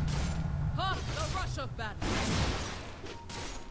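Weapons clash and magic effects ring out in a game battle.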